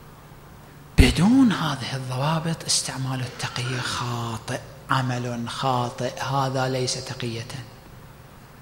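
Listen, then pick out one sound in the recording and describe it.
A man speaks with animation into a microphone, his voice filling a reverberant hall.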